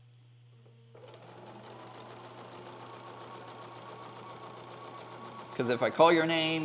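A sewing machine whirs steadily.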